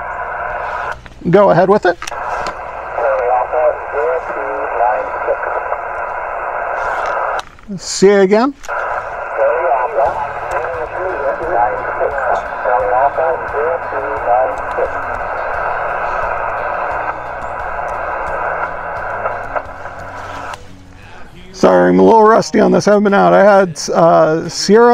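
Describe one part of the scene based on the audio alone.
A man speaks into a two-way radio in short bursts, close by.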